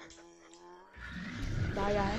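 A creature roars loudly and close.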